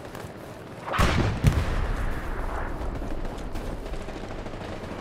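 An explosion booms in the distance.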